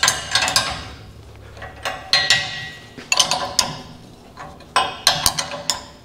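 A hammer bangs on sheet metal with ringing clangs in an echoing room.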